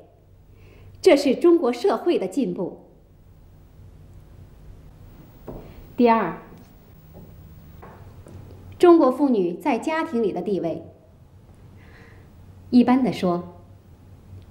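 A woman speaks calmly, as if addressing a group.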